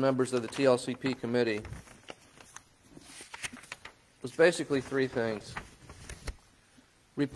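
An elderly man reads out slowly and calmly into a microphone.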